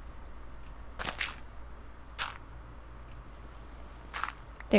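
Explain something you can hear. Dirt crunches as a block is dug out.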